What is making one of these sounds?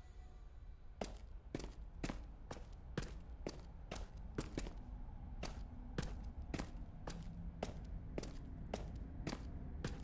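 Footsteps fall at a walking pace.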